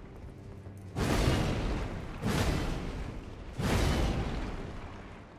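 Heavy blows smash into wood with loud, booming crashes.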